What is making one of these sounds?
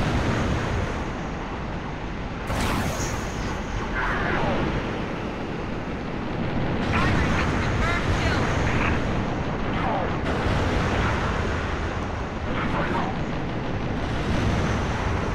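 Spacecraft engines roar steadily.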